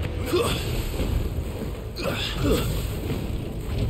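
A sword swishes and clashes in quick strikes.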